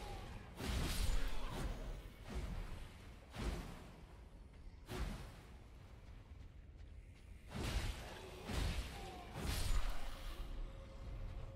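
Blades slash and strike bodies in quick bursts.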